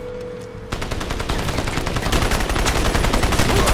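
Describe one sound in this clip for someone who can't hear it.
An explosion booms loudly and rumbles.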